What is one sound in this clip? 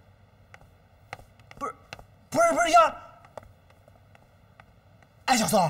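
Footsteps tap on stairs.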